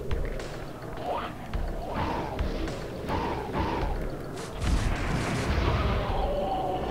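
A blade swishes through the air in quick swings.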